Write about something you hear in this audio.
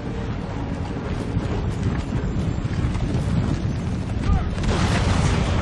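Many soldiers tramp along in step across open ground.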